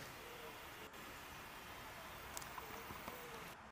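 Small birds peck at dry seed heads.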